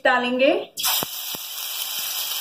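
A spoon taps against a frying pan.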